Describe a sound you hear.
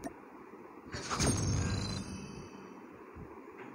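A whooshing upgrade effect swells briefly.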